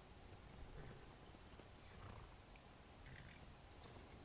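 A horse's hooves clop on the ground.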